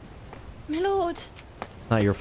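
A young girl calls out loudly nearby.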